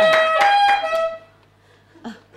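A saxophone plays a few loud notes.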